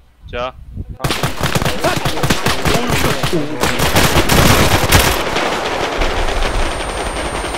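Rapid gunfire cracks and echoes outdoors.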